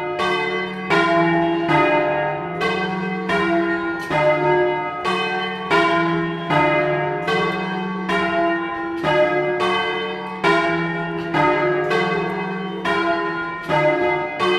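Large church bells ring loudly and repeatedly close by, each strike ringing on.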